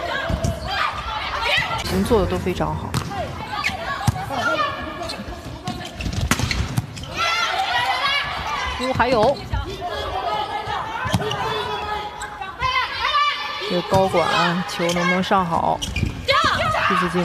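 A volleyball is struck with sharp smacks in a large echoing hall.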